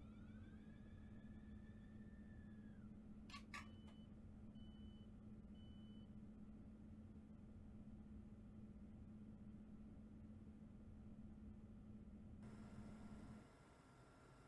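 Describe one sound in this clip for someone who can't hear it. A train's motor hums steadily inside the cab.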